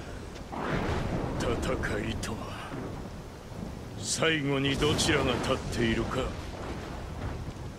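A man speaks in a low, grim voice close by.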